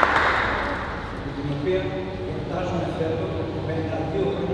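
A man speaks calmly through a microphone over loudspeakers.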